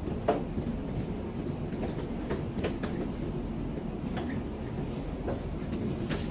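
Light clicks and knocks sound as a gloved worker handles a panel on a metal frame.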